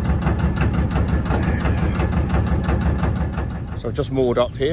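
A boat engine chugs steadily close by.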